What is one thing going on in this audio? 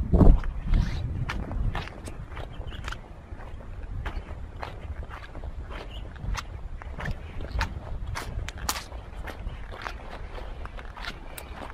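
Footsteps crunch on dry dirt and twigs.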